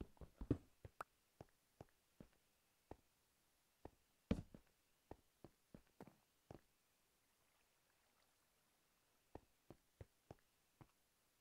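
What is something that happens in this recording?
Footsteps tap slowly on stone.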